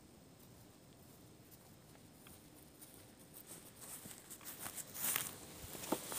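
Boots swish through grass close by.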